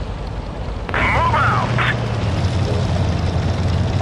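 A tank engine roars louder as the tank drives off.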